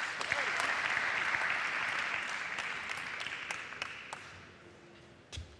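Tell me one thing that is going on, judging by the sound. A crowd applauds and cheers in a large hall, then fades.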